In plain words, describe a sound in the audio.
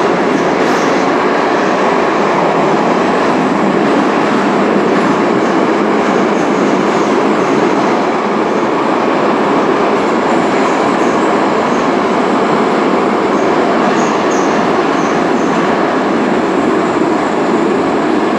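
Metal rattles and squeaks inside a moving train car.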